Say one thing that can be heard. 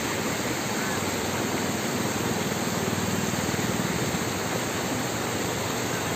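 Muddy water flows and gurgles steadily across a road.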